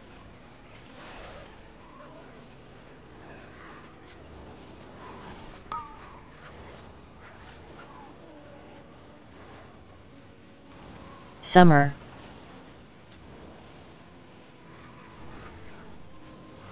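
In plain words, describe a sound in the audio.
A man talks calmly and quietly into a close microphone.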